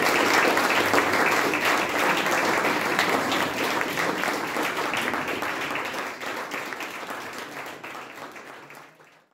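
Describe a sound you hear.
An audience applauds loudly in a room, and the clapping gradually fades away.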